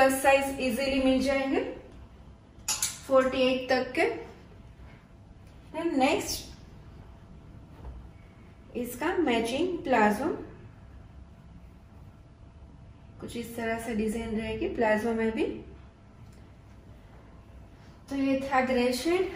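A woman speaks clearly and calmly in short bursts, close to a microphone.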